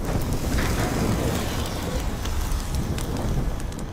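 Flames roar inside a chamber.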